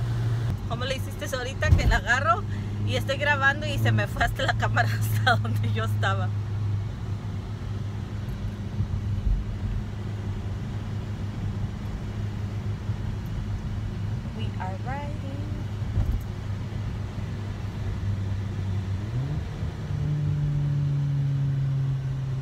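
A car engine hums steadily and shifts up in pitch near the end.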